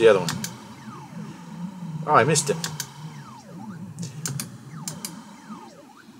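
Retro video game sound effects zap and chirp in quick, falling and rising bleeps.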